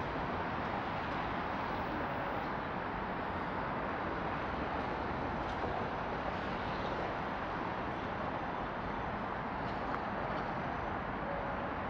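Scooters hum past close by.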